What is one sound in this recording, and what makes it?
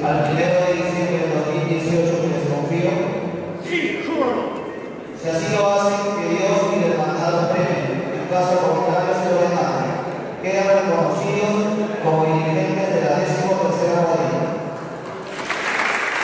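A man speaks steadily into a microphone, heard through loudspeakers.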